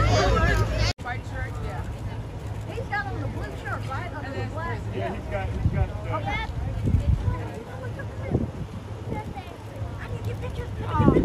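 Several people talk quietly as they walk outdoors.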